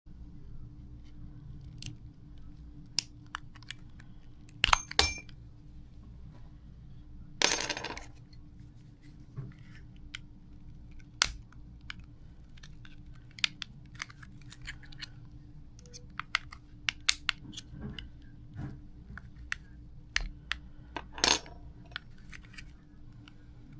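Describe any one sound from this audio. Small plastic parts click and snap as a key fob is taken apart by hand.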